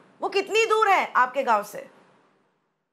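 A woman speaks quickly and with animation over an online call, then falls silent.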